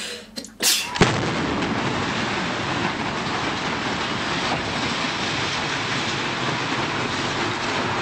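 A building collapses with a deep, steady rumble.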